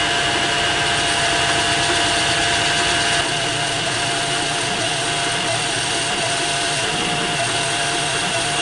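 A cutting tool scrapes and whines against spinning metal.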